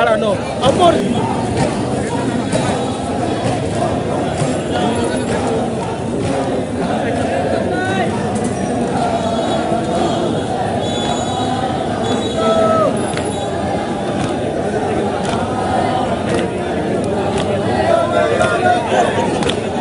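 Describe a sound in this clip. A crowd of marchers murmurs and calls out along a street.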